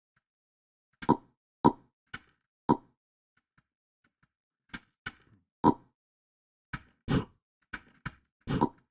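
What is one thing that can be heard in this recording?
Short soft pops sound as items are picked up.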